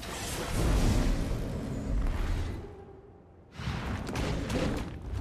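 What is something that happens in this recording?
Magic spell effects crackle and burst loudly.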